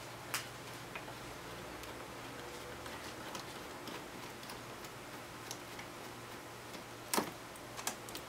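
A screwdriver clicks against a metal hose clamp.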